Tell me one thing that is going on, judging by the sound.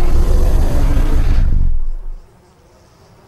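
A large dinosaur roars loudly and deeply.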